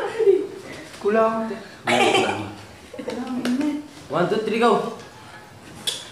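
A middle-aged man laughs heartily close by.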